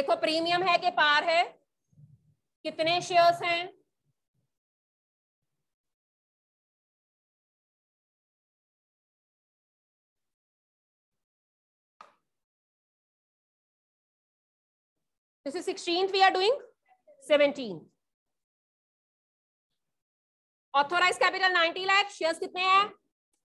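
A woman speaks calmly, pausing between phrases.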